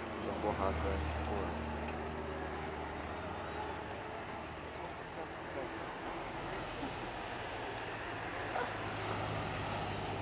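Tyres screech on tarmac through a tight bend.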